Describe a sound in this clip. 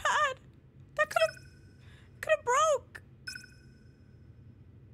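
A bright electronic chime rings out and lingers.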